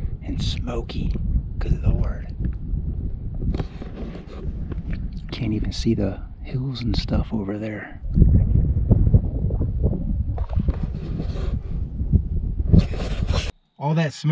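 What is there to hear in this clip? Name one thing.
A middle-aged man talks with animation, close to the microphone.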